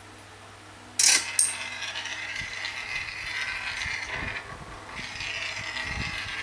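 Upbeat game music and sound effects play from a tablet's speaker.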